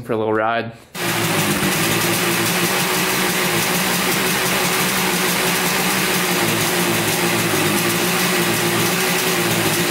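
A motorcycle engine starts and idles with a steady, buzzing putter.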